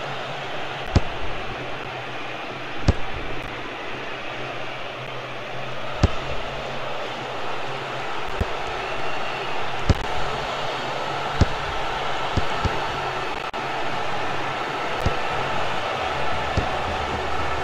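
A football is kicked with sharp thuds, again and again.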